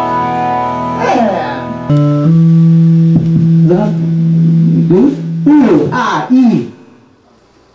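A young man sings into a microphone.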